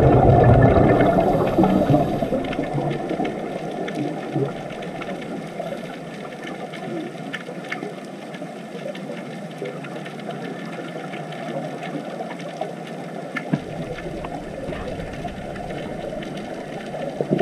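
Air bubbles from scuba divers gurgle and rise underwater.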